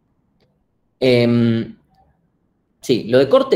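A young man speaks calmly through a computer microphone, as if on an online call.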